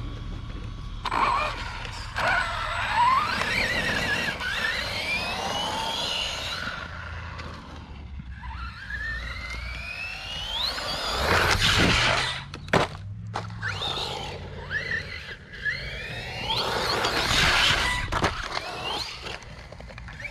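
An electric motor whines, rising and falling in pitch as a small car speeds up and slows down.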